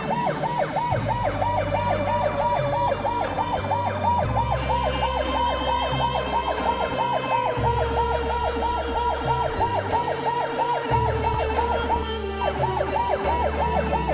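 A vehicle engine idles with a low rumble.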